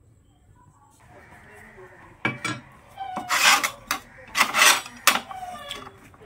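A cloth rubs and scrubs against a metal stovetop.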